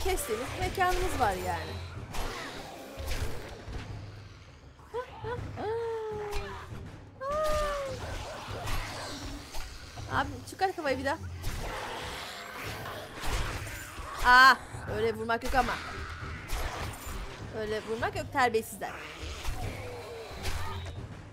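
A knife stabs flesh with wet thuds.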